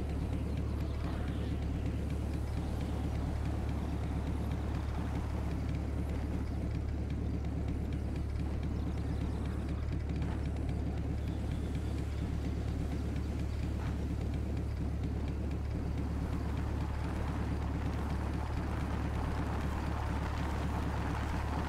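A motorcycle engine drones steadily as it rides over rough ground.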